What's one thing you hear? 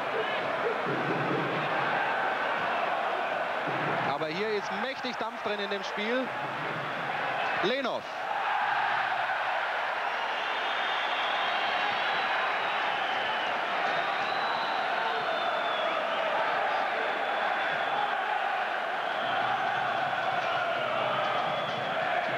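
A large stadium crowd roars and chants steadily in the open air.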